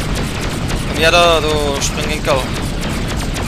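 Laser guns fire in rapid bursts with high zapping sounds.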